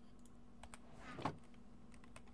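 A wooden chest lid creaks shut.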